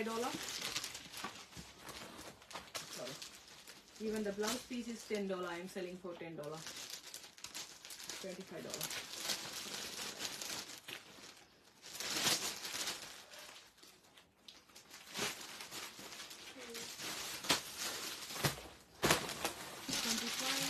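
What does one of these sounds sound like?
Silk fabric rustles as it is unfolded.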